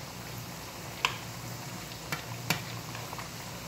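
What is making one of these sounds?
Metal tongs clink against a frying pan.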